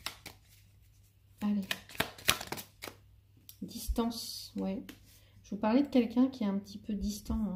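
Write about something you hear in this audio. Playing cards are laid down softly on a cloth-covered table.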